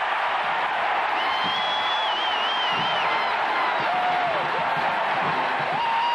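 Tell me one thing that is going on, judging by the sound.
A man shouts and cheers close by.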